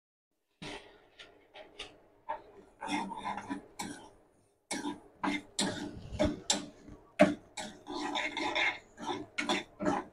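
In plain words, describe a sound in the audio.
A metal spoon scrapes and stirs dry seeds in a metal pan.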